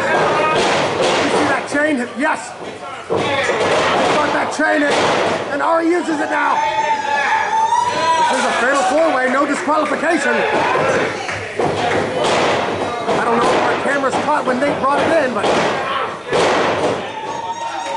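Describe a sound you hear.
Bodies slam hard onto a wrestling ring mat.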